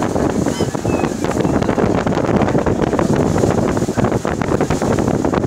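Wind blows across an open deck.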